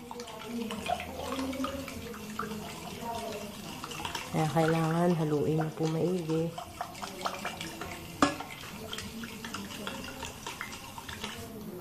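Water sloshes as a hand swirls it in a pot.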